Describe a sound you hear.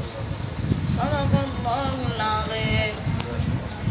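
A young man recites in a slow, melodic chanting voice.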